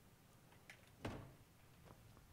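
A wooden chest lid shuts with a thud.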